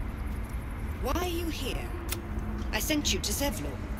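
A woman speaks sharply and close by.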